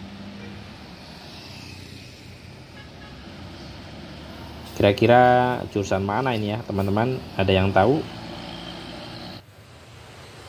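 Motorcycle engines buzz as they ride by.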